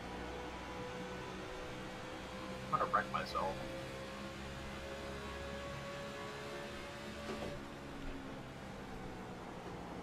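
Race car engines drone steadily.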